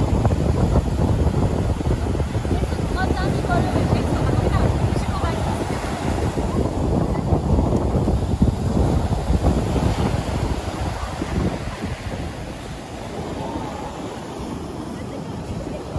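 Waves break and wash up onto a sandy beach.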